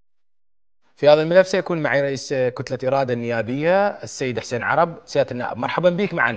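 A middle-aged man speaks clearly and steadily into a microphone, close up.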